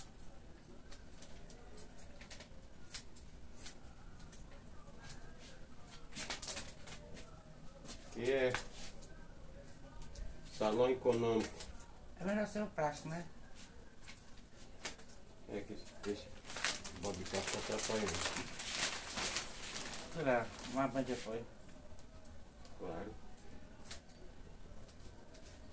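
Scissors snip through hair in quick clicks.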